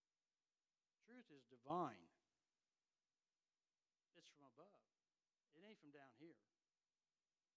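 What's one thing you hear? An elderly man preaches with feeling into a microphone, in short bursts with pauses.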